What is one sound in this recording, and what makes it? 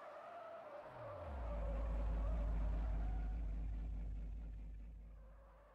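A car engine revs up and roars loudly.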